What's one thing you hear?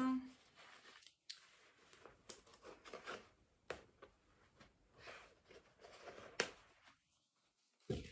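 Plastic wrapping rustles and crinkles in a young woman's hands.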